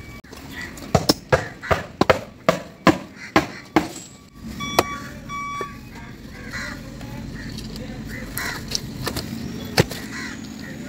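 A hammer pounds a wooden stake into the ground with sharp knocks.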